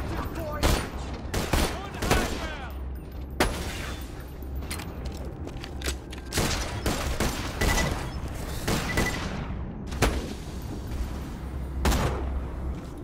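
Gunshots crack sharply again and again, each followed by a ringing echo.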